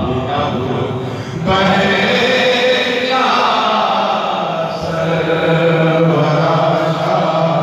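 A man speaks loudly into a microphone over a loudspeaker, with echo outdoors.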